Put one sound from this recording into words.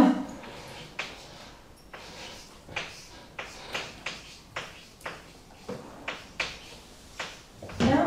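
Chalk taps and scrapes on a blackboard in a large echoing room.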